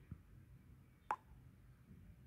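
A phone makes a short pop as a message is sent.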